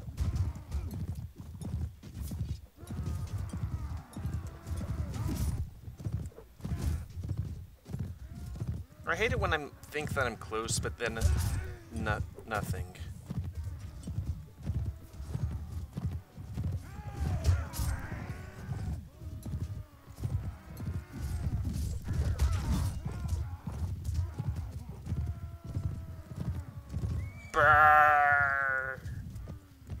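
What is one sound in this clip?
Horse hooves gallop over grass.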